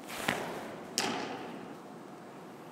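A softball smacks sharply into a catcher's mitt, echoing through a large indoor hall.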